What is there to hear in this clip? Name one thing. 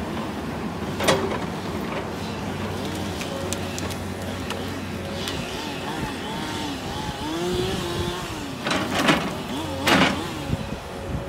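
Branches crack and snap as a log is lifted.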